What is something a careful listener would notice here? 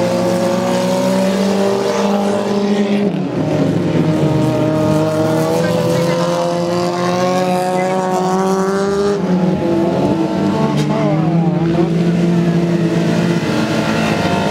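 Tyres skid and spray loose dirt.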